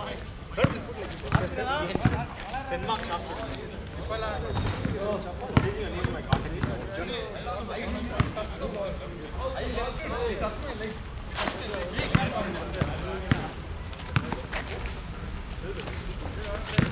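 Young men call out and shout to each other outdoors.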